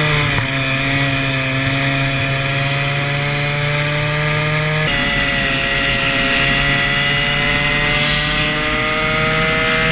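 A kart engine buzzes loudly and steadily at high revs close by.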